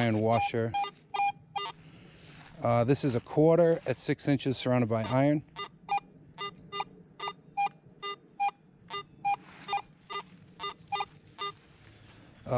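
A metal detector gives short, repeated electronic beeps.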